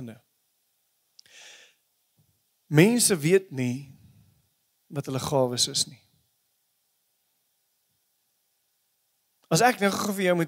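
A man speaks into a microphone with calm, measured pauses, heard through loudspeakers in a large room.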